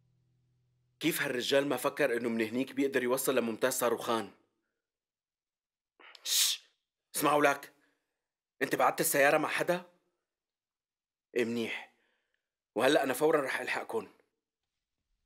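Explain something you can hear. A young man talks tensely into a phone, close by, in short bursts.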